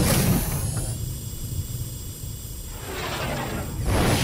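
A bright magical shimmer rings out.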